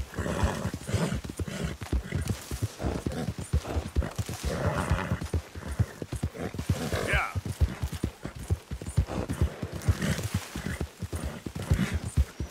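Footsteps rustle through tall grass and brush at a steady walking pace.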